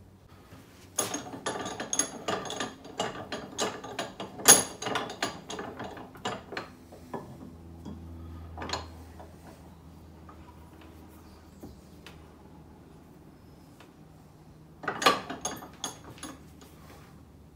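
A cloth rubs and squeaks against a metal handle.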